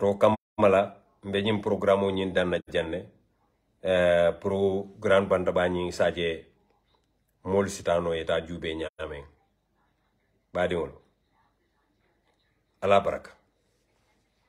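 A man speaks calmly and slowly, close to the microphone, with pauses.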